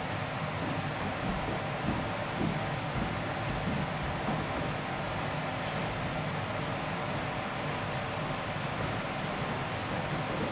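Footsteps cross a wooden stage.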